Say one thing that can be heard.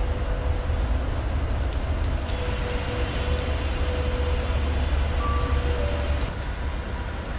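Jet engines roar steadily outside an airliner's wing.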